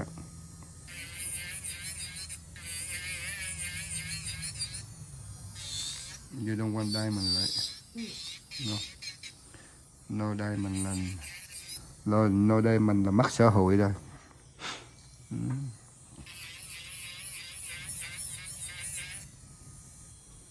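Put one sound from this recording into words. An electric nail drill whirs in a high whine, starting and stopping.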